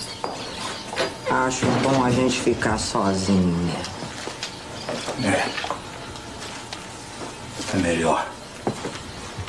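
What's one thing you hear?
An older man grunts and speaks gruffly.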